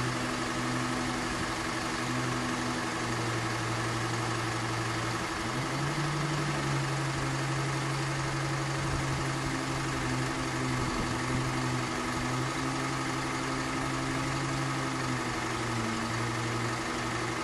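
A level crossing alarm sounds steadily, its two-tone warning wavering.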